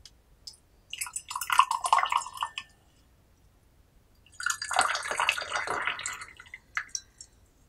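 Water splashes as it pours into a glass pitcher.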